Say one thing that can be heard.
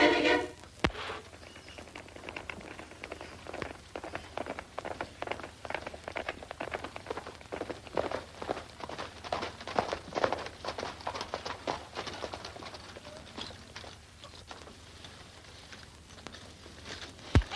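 Horse hooves clop quickly on hard ground.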